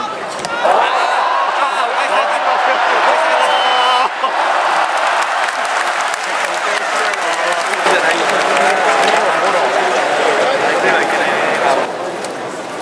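A crowd of spectators cheers and shouts loudly nearby.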